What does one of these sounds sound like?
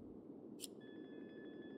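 A soft click sounds once.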